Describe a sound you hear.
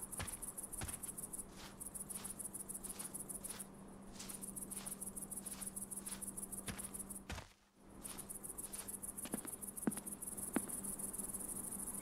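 Footsteps rustle slowly through grass.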